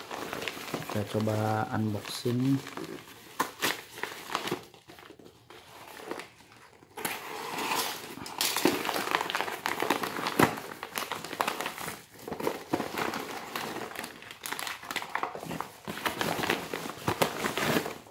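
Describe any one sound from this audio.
A padded paper envelope crinkles and rustles as it is handled and torn open.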